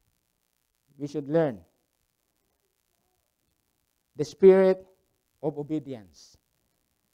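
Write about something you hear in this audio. A middle-aged man speaks slowly and calmly into a microphone, with long pauses.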